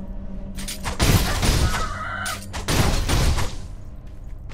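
A sword swings and whooshes through the air.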